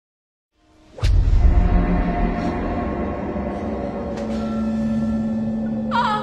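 A woman cries out in fright.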